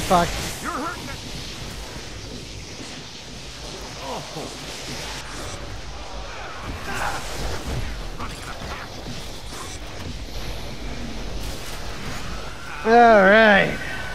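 An energy beam crackles and hums as it fires.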